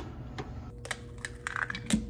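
An egg cracks against the rim of a pan.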